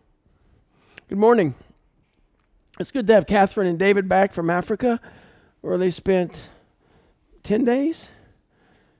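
A middle-aged man speaks calmly into a headset microphone.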